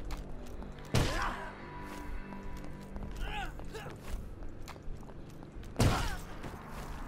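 A heavy blow lands hard, twice.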